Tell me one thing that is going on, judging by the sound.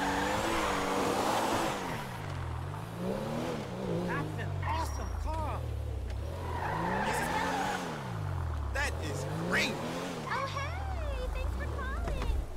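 Tyres skid and scrape on the ground.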